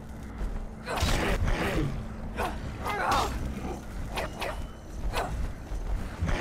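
A blade strikes with sharp, heavy blows.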